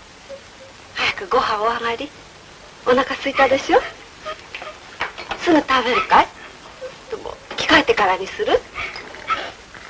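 A middle-aged woman speaks with animation.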